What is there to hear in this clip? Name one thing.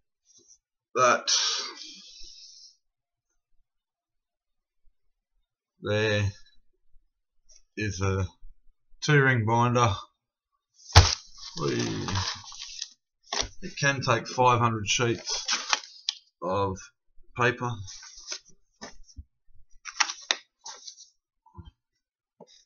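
Papers rustle and flap.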